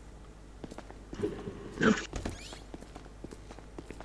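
A heavy swinging door bangs open.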